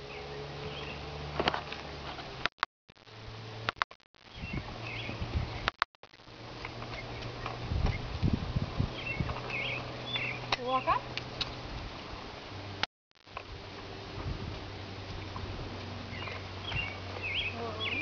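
A horse walks on soft dirt, its hooves thudding dully.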